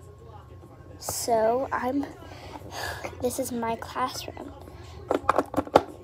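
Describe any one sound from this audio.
Small plastic toys tap and knock lightly against a hard surface.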